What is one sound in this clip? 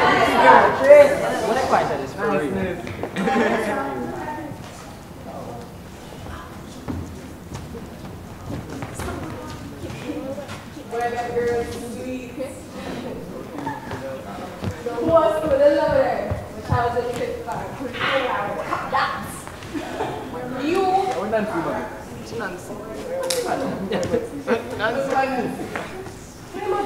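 Young actors speak and sing loudly in a large hall.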